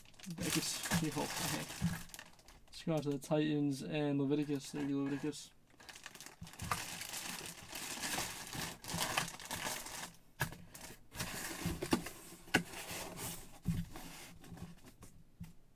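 A cardboard box rustles and knocks as it is moved and opened.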